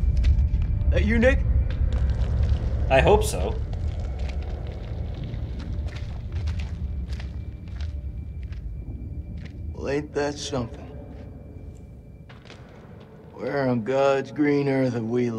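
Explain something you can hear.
A young man speaks in short bursts close to a microphone.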